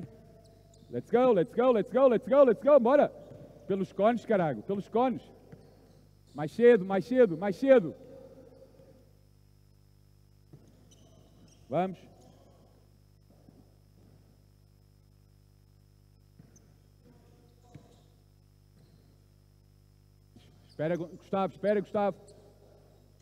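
Basketball shoes squeak sharply on a hard floor in an echoing hall.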